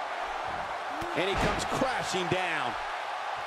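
A body slams onto a wrestling mat with heavy thuds.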